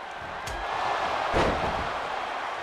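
A heavy body slams down onto a mat with a loud thud.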